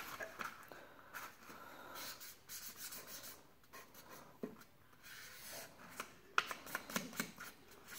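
A marker squeaks and scratches on a paper plate.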